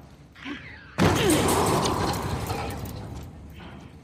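Glass shatters loudly nearby.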